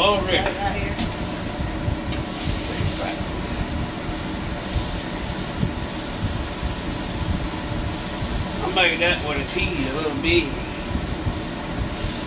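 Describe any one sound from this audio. A metal spatula scrapes against a frying pan.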